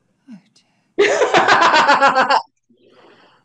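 A young woman laughs loudly and heartily.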